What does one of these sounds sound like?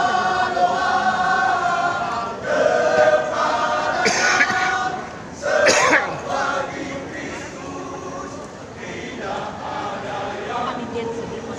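A large crowd chatters and cheers.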